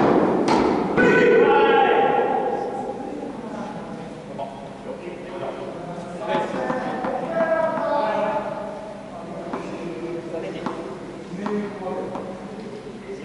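Men talk nearby with animation in a large echoing hall.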